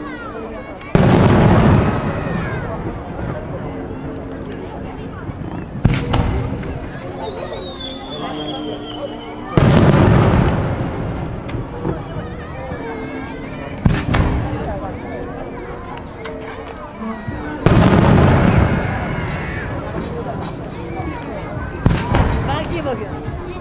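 Fireworks burst with deep booming bangs that echo and rumble away.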